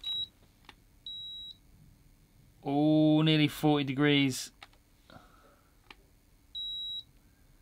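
A handheld thermometer gives short, high electronic beeps.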